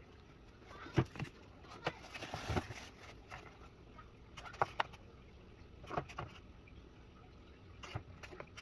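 Eggs clack and tap against each other and a carton as they are handled.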